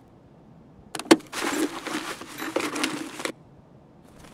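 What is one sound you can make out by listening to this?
Gear rustles and clicks while being rummaged through.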